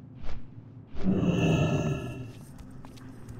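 A shimmering magical whoosh swells and fades.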